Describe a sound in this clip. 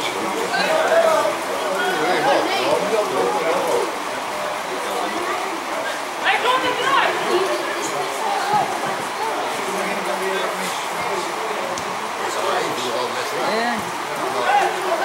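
Men shout to one another across an open outdoor pitch.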